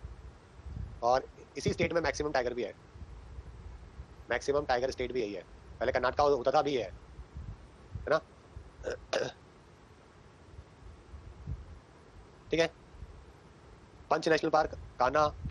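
A young man lectures calmly into a close microphone, in bursts with pauses.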